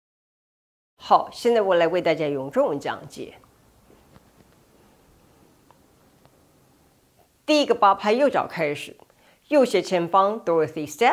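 A young woman speaks calmly into a close microphone, giving instructions.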